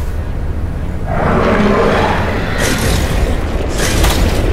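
A huge sea creature roars loudly.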